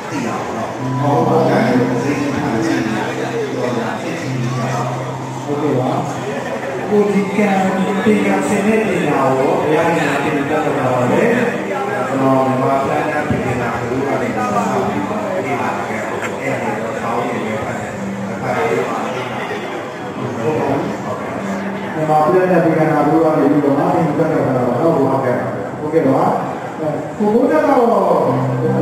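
A man speaks steadily into a microphone, heard through a loudspeaker.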